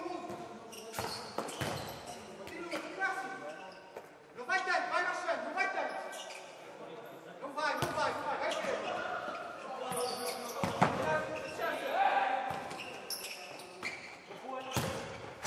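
A ball thuds as players kick it.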